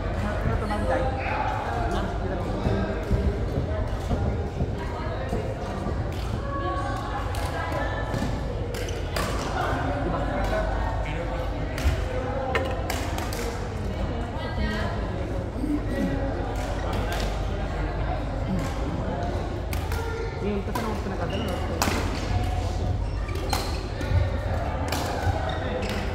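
Many voices chatter and call out in a large echoing hall.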